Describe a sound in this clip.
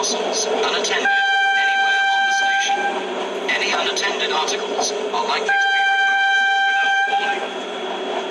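A train horn sounds two long blasts.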